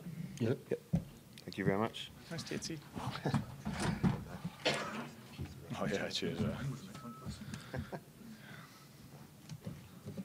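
Several men chat casually nearby in a room.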